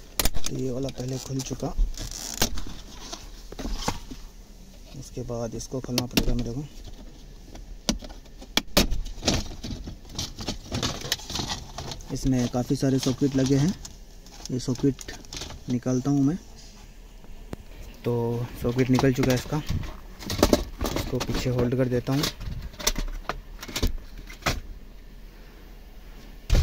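Plastic trim clicks and rattles.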